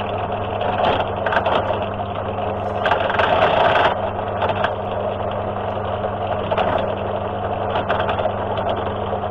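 A drill press motor hums steadily.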